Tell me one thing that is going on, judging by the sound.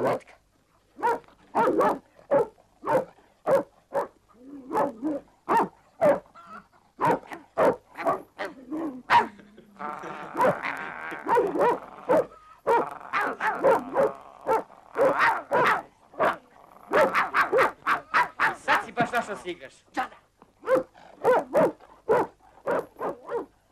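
Boys talk with each other in excited voices.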